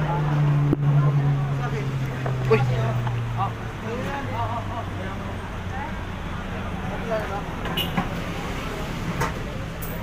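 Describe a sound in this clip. A ladle clanks inside a large metal cooking pot.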